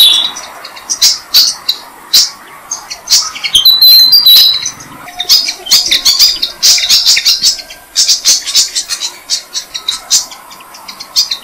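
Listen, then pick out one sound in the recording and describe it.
Nestling birds chirp and cheep loudly and rapidly up close.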